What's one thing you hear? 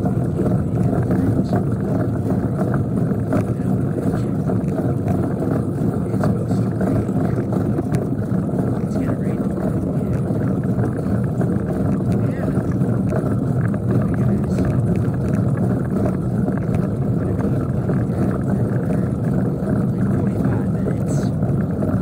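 Tyres roll steadily over rough asphalt.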